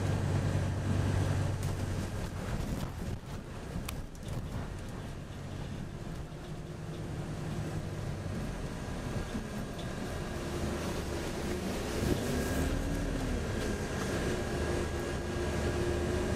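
A bus engine hums and rumbles steadily, rising and falling as the bus drives.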